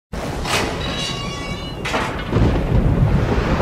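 An iron gate creaks slowly open.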